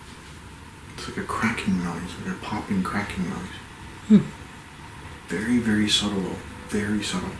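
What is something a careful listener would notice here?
A man speaks quietly and calmly close by.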